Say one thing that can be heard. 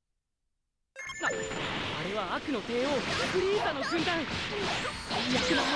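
Energy blasts whoosh and explode in a fast video game fight.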